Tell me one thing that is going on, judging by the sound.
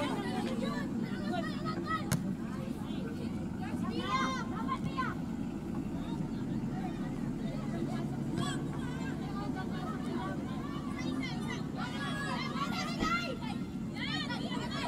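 Young women shout to one another across an open outdoor field.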